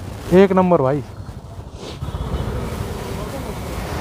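A motorcycle rides off down a street.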